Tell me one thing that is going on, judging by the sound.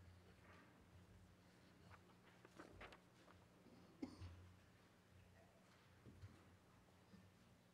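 Footsteps tap softly on a floor.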